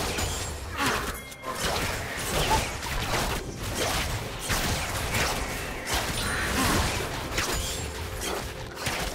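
Video game spell effects whoosh and crash during a fight.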